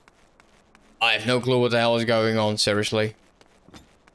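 A young man speaks loudly and with animation, close to a microphone.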